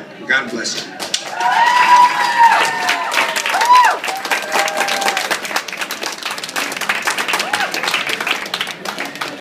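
A crowd applauds loudly in a room.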